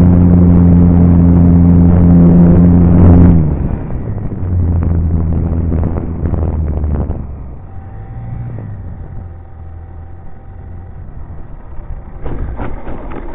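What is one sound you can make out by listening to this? Wind rushes over a microphone during flight.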